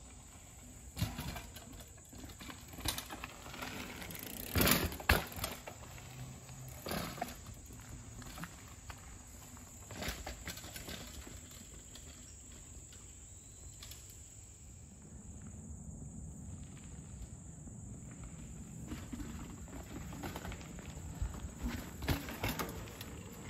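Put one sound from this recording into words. A bicycle thumps down over logs.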